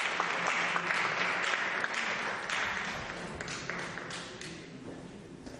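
An audience applauds and the clapping fades away.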